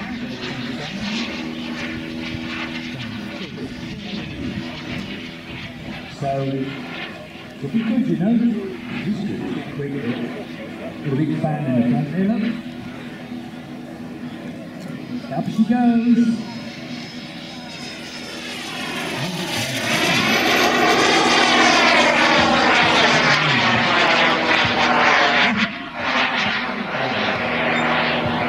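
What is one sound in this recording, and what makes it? A model jet engine whines high overhead, swelling to a loud roar as it sweeps past and then fading.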